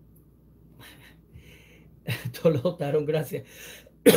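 A middle-aged man laughs softly.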